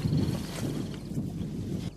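Footsteps swish through tall dry grass.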